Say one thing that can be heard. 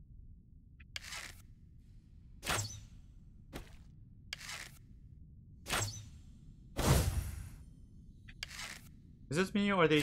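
A bow twangs as arrows are shot in short, sharp bursts.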